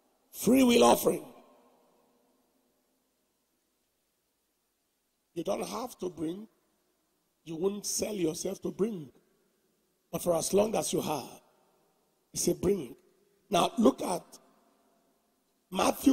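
A man preaches with animation through a microphone, in short bursts with pauses.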